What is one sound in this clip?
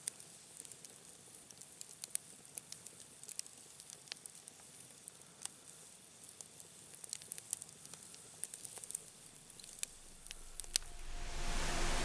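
A wood fire crackles and pops with sharp snaps.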